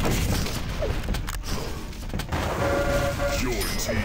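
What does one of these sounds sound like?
Rockets explode with loud booms.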